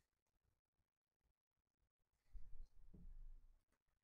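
Cards tap softly as a stack is set down.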